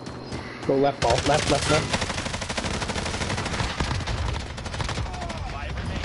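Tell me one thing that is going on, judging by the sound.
Rapid gunfire crackles from a game.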